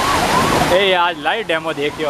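A small truck splashes through deep floodwater.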